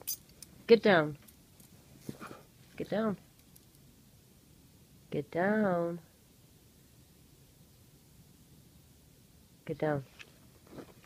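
A dog whines in short, high, wavering bursts close by.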